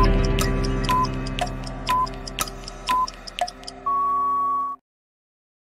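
A countdown timer beeps once a second, ending in a long beep.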